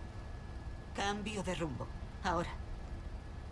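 A young woman speaks calmly and firmly.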